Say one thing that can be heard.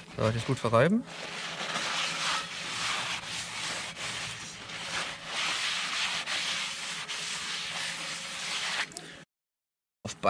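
A paper towel rubs around inside an iron pan.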